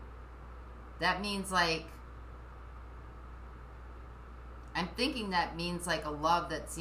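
A middle-aged woman speaks calmly and close by.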